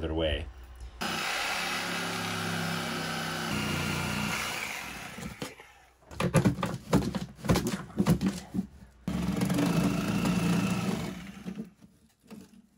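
A power hammer drill chisels into concrete with a steady loud rattling drone.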